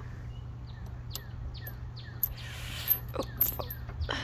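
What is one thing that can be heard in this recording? A metal swing chain creaks and clinks as a swing moves.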